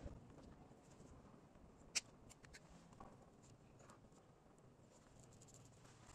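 Pliers snip and strip wire with small clicks.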